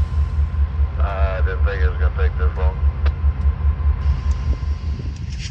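A diesel locomotive engine rumbles steadily in the distance.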